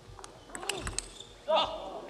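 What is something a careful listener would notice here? A ping-pong ball clicks quickly back and forth off paddles and a table.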